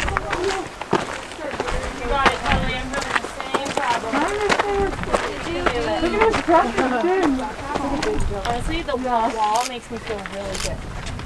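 Footsteps crunch on a rocky gravel trail.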